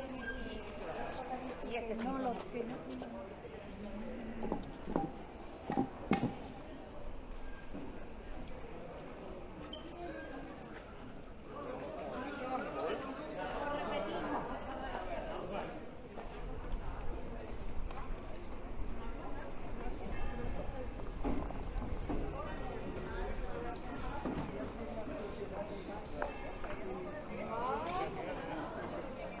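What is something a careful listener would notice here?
People chatter nearby on a busy street.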